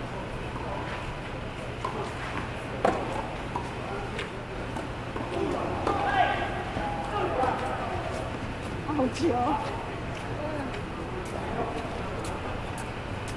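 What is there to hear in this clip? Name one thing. Tennis rackets strike a ball back and forth with sharp pops in a large echoing hall.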